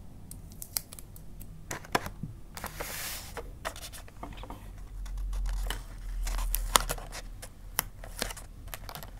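Wrapping paper crinkles and rustles as it is folded.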